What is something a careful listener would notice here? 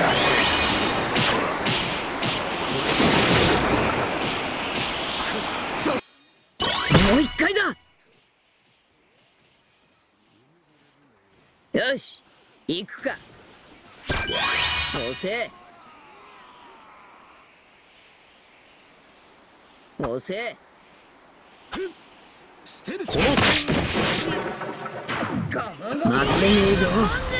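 Video game attacks whoosh and crash in quick bursts.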